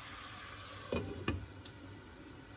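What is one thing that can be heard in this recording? A metal lid clinks down onto a pan.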